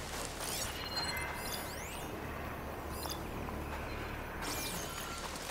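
A soft electronic hum swells while a scanner is active.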